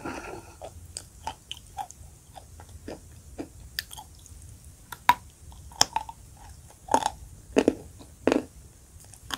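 A woman chews with soft crunching and smacking sounds, close to a microphone.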